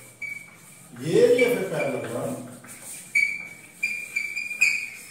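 Chalk squeaks and taps on a blackboard.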